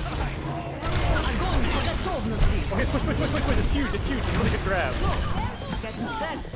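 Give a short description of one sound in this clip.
Laser guns fire in rapid bursts.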